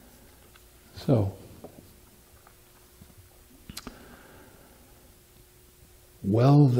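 An elderly man sings in short phrases close by.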